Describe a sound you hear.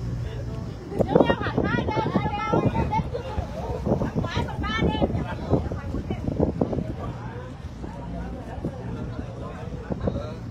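Young women and men chatter and shout excitedly close by.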